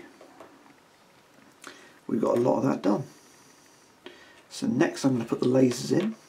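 Small plastic pieces click softly as they are handled.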